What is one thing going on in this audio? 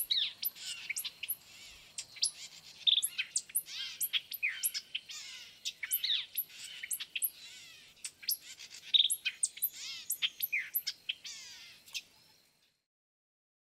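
A small songbird sings a fast, buzzy run of chirps and trills.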